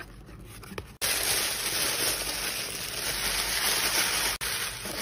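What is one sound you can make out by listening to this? Tissue paper rustles and crinkles loudly.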